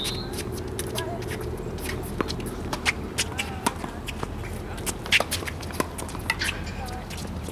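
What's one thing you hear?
Tennis balls are struck with rackets in quick sharp pops, outdoors.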